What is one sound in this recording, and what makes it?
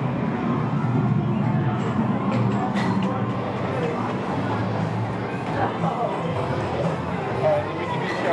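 Arcade game machines beep and play electronic tunes.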